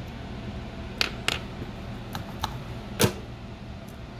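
Metal tweezers click and tap against a small circuit board.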